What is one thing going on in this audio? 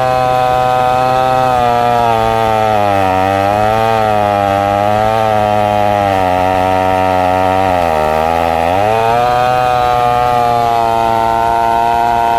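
A chainsaw roars loudly close by, its engine pitch dipping and rising as it cuts through wood.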